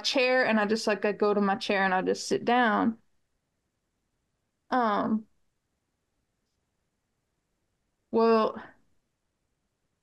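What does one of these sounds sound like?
A middle-aged woman speaks with animation over an online call, pausing between phrases.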